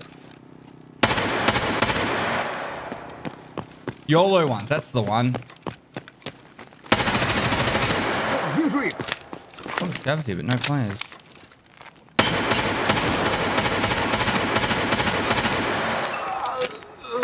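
Rifle shots crack loudly in quick bursts.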